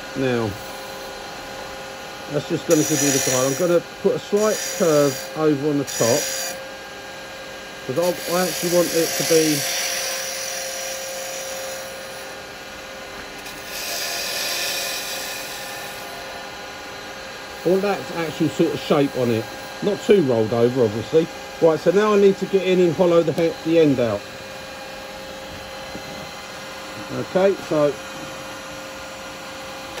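A wood lathe hums steadily as it spins.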